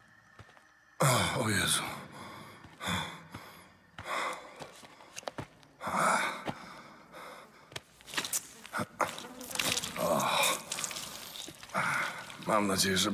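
A man speaks in a low, strained voice nearby.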